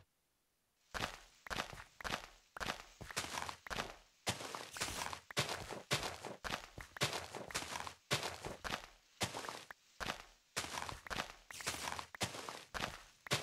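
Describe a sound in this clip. Shovel blows dig quickly and repeatedly into dirt.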